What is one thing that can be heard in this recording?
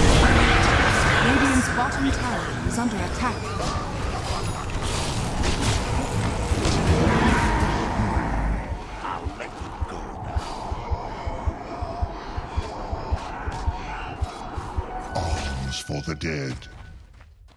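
Video game battle effects clash and blast rapidly.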